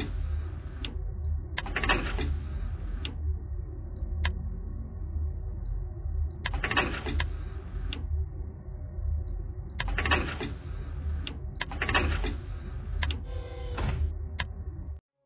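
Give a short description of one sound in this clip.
A video game menu clicks softly as items are selected and bought.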